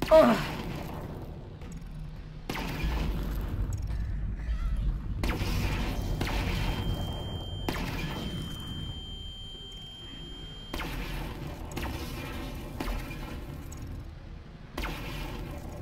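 Explosions boom loudly, one after another.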